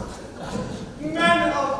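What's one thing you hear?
A young woman speaks loudly on a stage in a large echoing hall.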